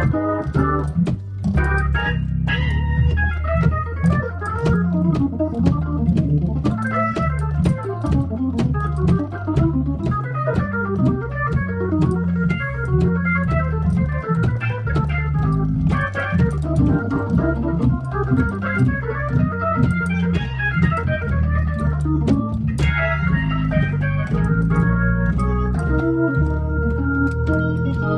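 Organ keys click and clack under fast fingers.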